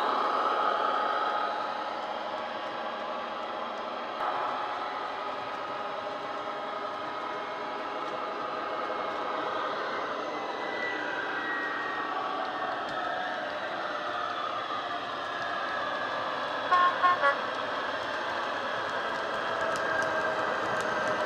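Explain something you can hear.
A model train whirs steadily as it runs along the track.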